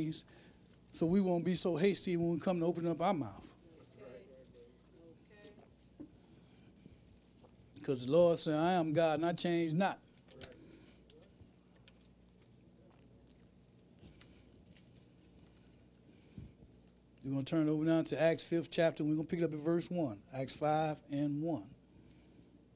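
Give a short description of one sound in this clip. A man speaks calmly and slowly through a microphone, in short bursts with pauses.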